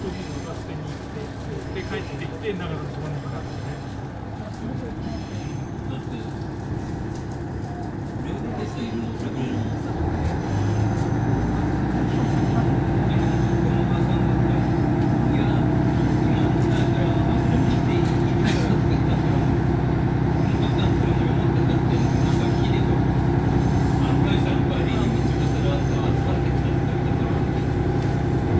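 A train rumbles steadily along the tracks, growing louder.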